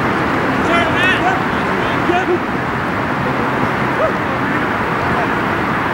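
Men shout out across an open outdoor pitch.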